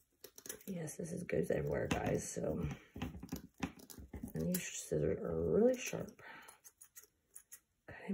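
Scissors snip through a wiry scrubber.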